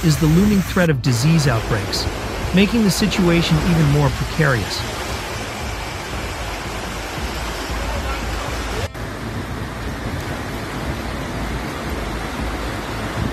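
Floodwater rushes and churns loudly.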